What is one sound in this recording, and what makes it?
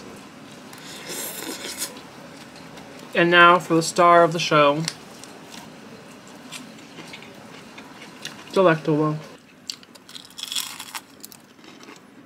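A young man slurps noodles.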